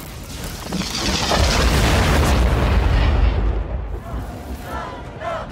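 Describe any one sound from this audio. A huge blast booms and rumbles.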